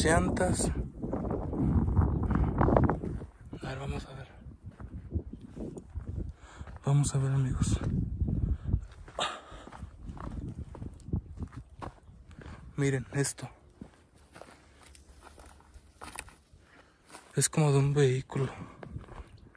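Footsteps crunch on dry grass and twigs.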